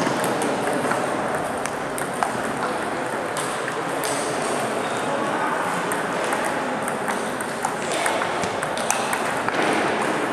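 A steady murmur of voices fills a large echoing hall.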